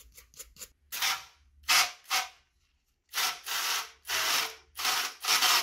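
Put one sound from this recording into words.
A spray nozzle hisses in repeated bursts of water.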